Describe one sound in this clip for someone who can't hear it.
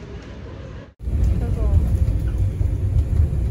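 A bus engine rumbles low while driving.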